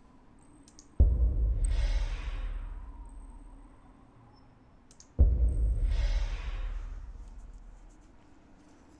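A game menu plays a deep booming whoosh when a button is pressed.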